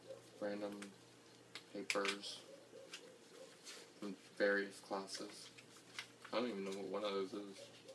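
A young man reads out aloud nearby, speaking in short bursts.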